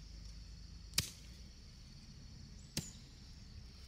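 A woman digs and scrapes at dry soil with a hand tool.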